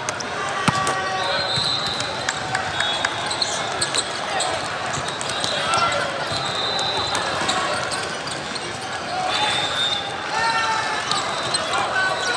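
Shoes squeak sharply on a hard court in a large echoing hall.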